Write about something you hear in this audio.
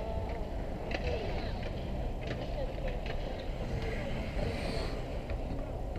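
Ice skates scrape and carve across an outdoor rink.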